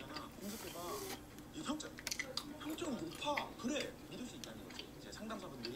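A young woman chews crunchy fries.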